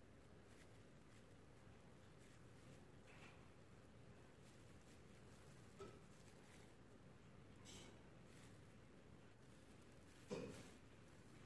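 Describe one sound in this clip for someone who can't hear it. Plastic gloves rustle and crinkle.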